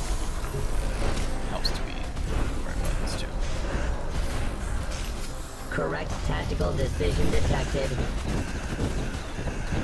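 Magic spells burst and crackle in a game battle.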